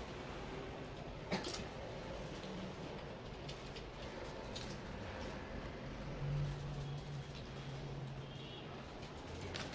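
A young woman crunches on chips.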